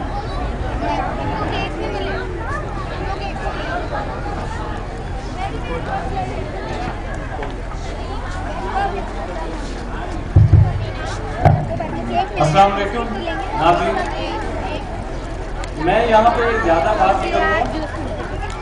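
A large crowd of children and adults chatters all around.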